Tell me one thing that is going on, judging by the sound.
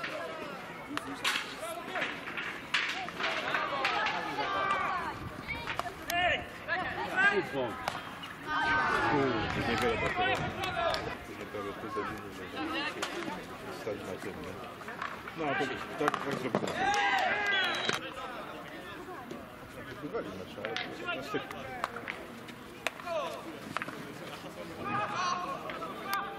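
Hockey sticks crack against the ball now and then.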